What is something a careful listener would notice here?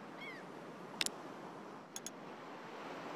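Short electronic clicks sound as a selection changes.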